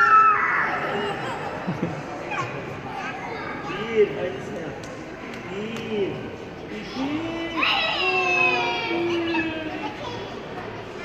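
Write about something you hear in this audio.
A young girl squeals and chatters excitedly nearby.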